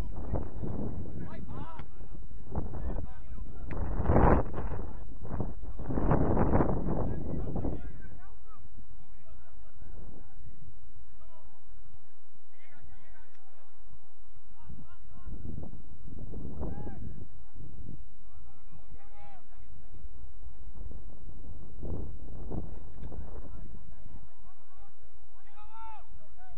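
Wind blows against a microphone outdoors.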